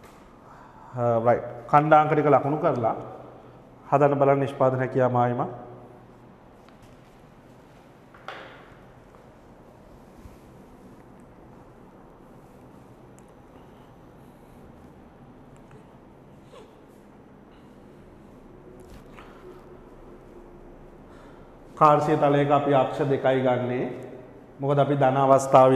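A man speaks calmly through a clip-on microphone, with pauses.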